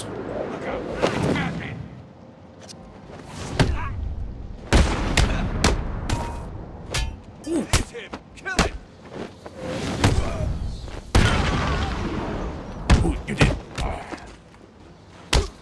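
Heavy punches and kicks land with sharp thuds.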